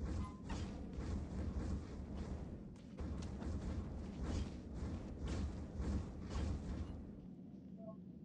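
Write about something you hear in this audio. Blades slash and strike in a rapid flurry of game combat.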